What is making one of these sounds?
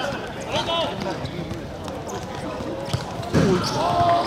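A football is kicked hard on a hard court.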